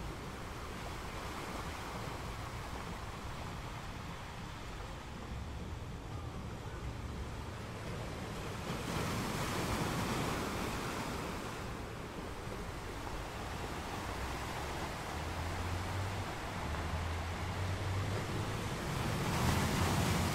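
Surf rushes and hisses over the rocks.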